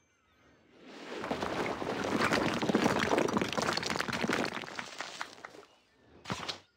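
A burst of building noise rushes and clatters.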